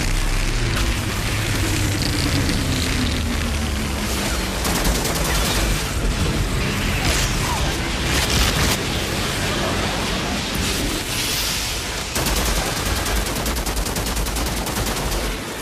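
Fire roars and crackles all around.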